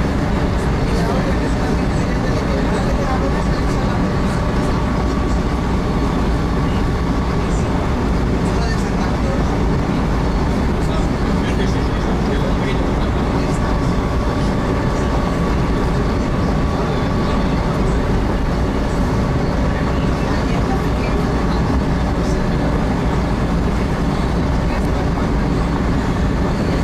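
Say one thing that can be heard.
A train rumbles steadily along the tracks, heard from inside the carriage.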